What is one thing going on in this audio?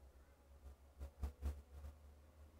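A computer mouse clicks.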